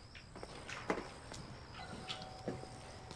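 A woman knocks on a door.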